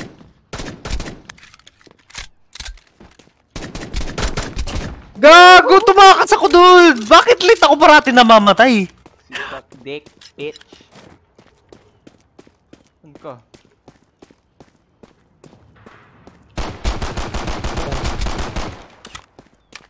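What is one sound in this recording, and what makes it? Pistol shots crack in quick bursts.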